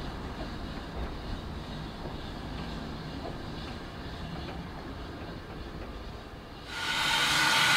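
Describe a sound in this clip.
Railway coaches rumble along the track as a train pulls away.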